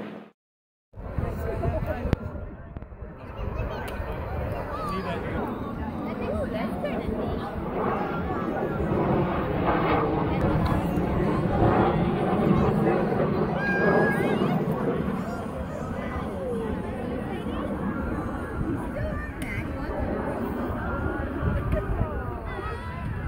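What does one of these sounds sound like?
A jet engine roars steadily overhead.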